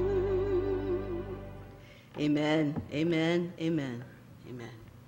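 A woman sings through a microphone and loudspeakers with a wavering voice.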